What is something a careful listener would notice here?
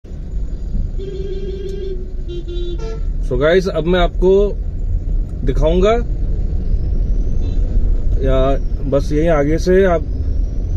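A car engine rumbles steadily, heard from inside the car.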